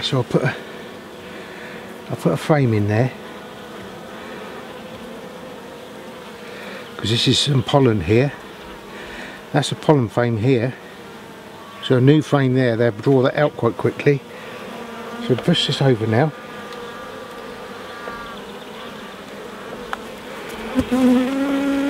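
Bees buzz steadily.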